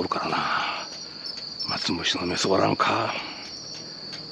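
A man speaks quietly close by.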